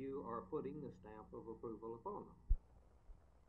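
A middle-aged man speaks calmly into microphones.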